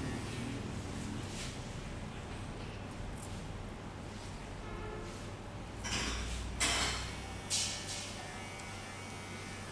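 Hands rub and pat softly on skin.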